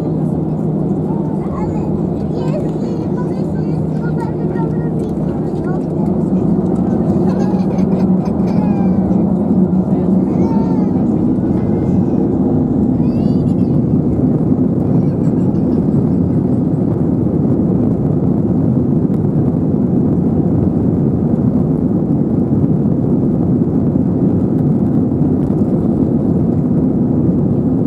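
Jet engines roar steadily and grow louder as an airliner speeds up for takeoff.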